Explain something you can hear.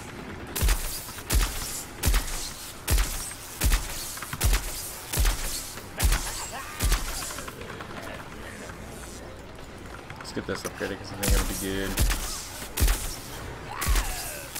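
An energy blaster fires in sharp, regular zaps.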